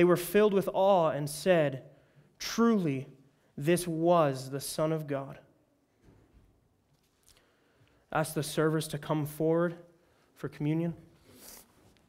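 A young man speaks calmly into a microphone.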